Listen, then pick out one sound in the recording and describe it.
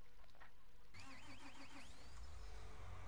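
A tractor engine starts up and idles.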